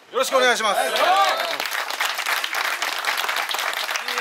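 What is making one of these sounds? A group of people clap their hands together rapidly.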